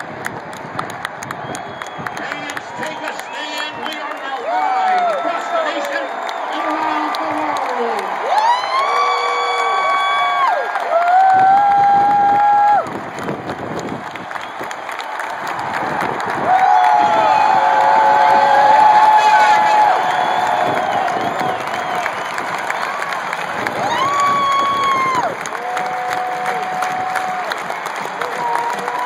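A huge stadium crowd roars and cheers outdoors.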